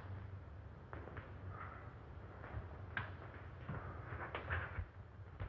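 Footsteps cross a wooden floor.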